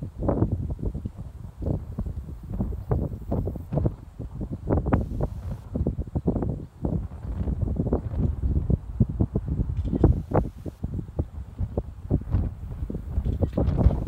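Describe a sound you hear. Wind gusts and buffets loudly against the microphone outdoors.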